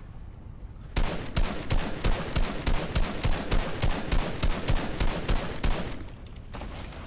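Rapid gunshots fire in quick succession.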